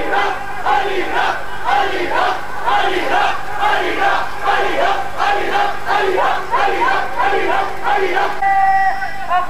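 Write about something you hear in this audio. A large crowd of men chants rhythmically in unison outdoors.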